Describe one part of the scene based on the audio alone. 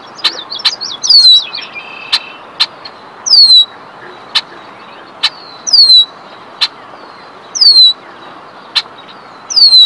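A bird gives sharp, high chips between the songs.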